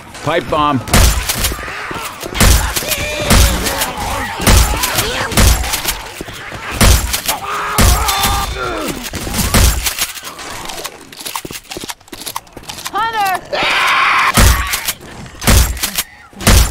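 A rifle fires loud shots in bursts.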